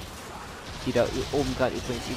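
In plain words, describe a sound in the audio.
Water splashes down from waterfalls nearby.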